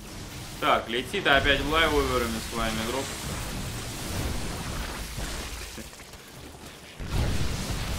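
Game battle sound effects of weapons firing and explosions play.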